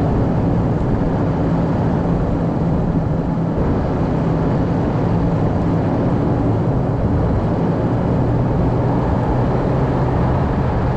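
Wind blows steadily and rumbles outdoors.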